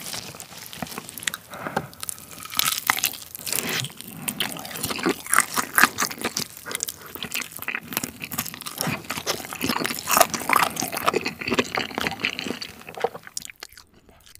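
A young man chews crunchy fried chicken loudly and close up.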